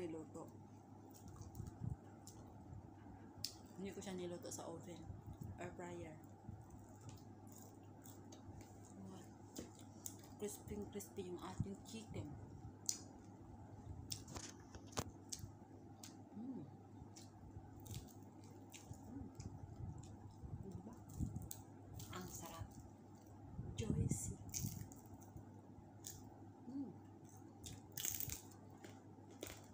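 Roasted chicken skin crackles and tears under fingers.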